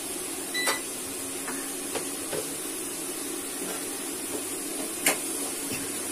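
A spatula scrapes and clinks against a metal pot.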